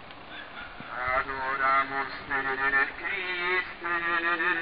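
A group of men and women chant together outdoors.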